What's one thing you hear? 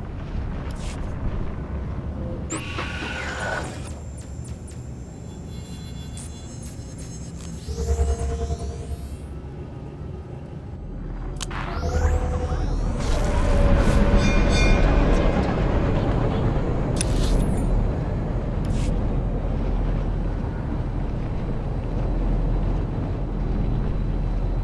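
A hovering vehicle's engine hums steadily.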